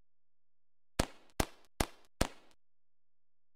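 Sharp pops burst four times in a row.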